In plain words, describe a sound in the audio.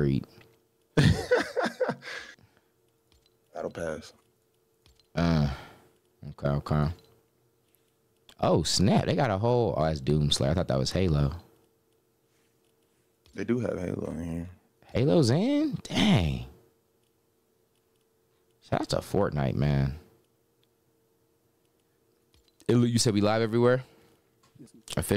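A young man talks with animation close to a microphone, in bursts with pauses.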